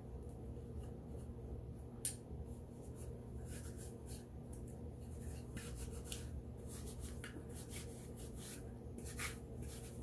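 A cloth rubs and wipes against a plastic comb.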